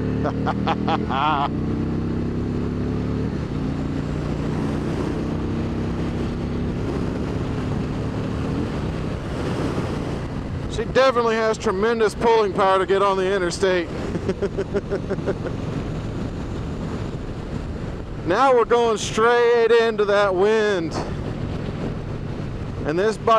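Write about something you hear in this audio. A motorcycle engine hums steadily and shifts in pitch as the bike cruises.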